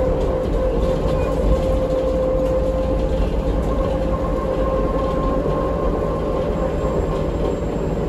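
A bus engine hums and rumbles steadily while the bus drives.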